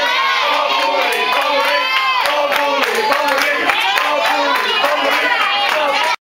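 A young man claps his hands.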